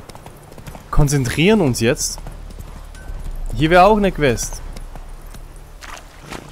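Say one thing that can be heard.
A horse's hooves thud along a dirt path at a steady gallop.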